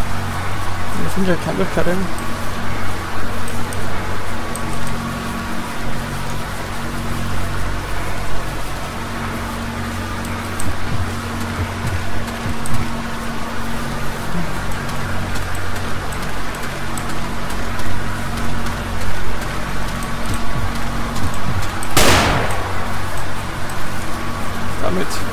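Footsteps crunch on leaves and undergrowth.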